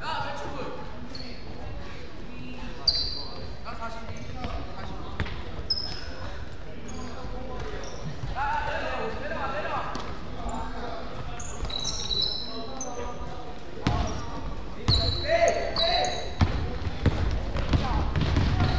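Young voices shout and call out across a large echoing gym.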